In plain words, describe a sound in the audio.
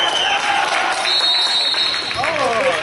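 A referee's whistle blows once.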